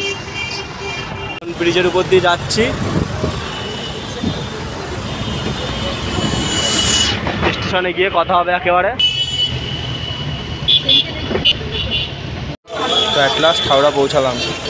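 Heavy traffic rumbles steadily along a busy road.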